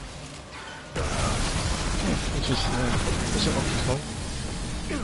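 A blade swings and slashes with a whoosh.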